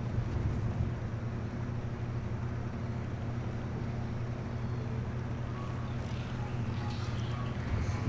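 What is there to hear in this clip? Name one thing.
A car engine rumbles steadily at low speed.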